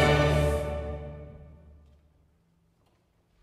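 An orchestra plays a final loud chord that rings out and fades in a large hall.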